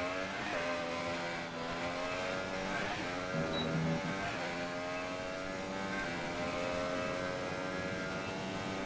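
A racing car engine whines at high revs, shifting gears and rising in pitch.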